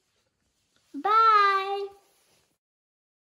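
A young girl calls out a greeting in a high voice.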